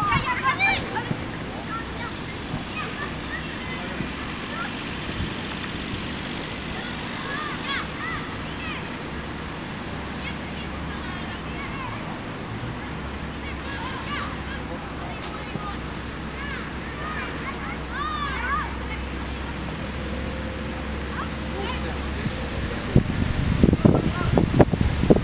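Children shout and call out across an open field in the distance.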